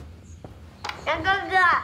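A young child speaks in a high voice.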